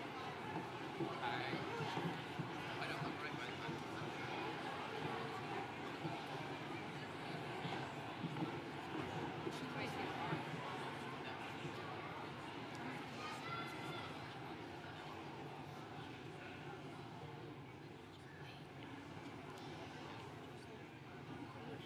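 A large crowd murmurs and shuffles in a big echoing hall, growing quieter toward the end.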